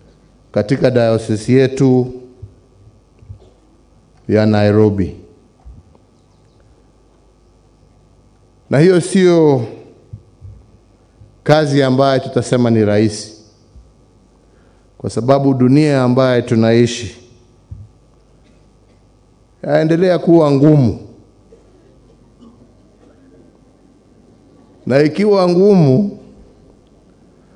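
A man speaks slowly and deliberately into a microphone, with long pauses, in a large echoing space.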